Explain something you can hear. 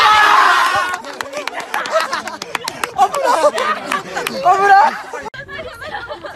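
Young men laugh and shout loudly close by.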